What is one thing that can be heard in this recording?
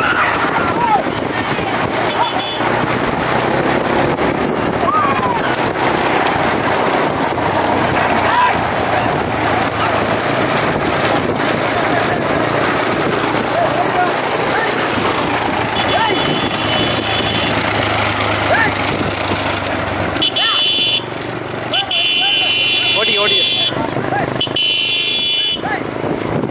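Young men riding bullock carts shout with excitement.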